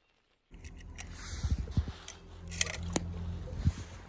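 A small toy car splashes into pool water.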